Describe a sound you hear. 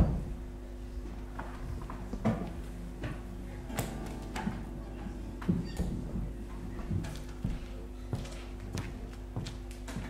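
An electric guitar is plucked softly now and then.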